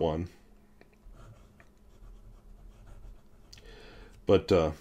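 A pen nib scratches softly on paper.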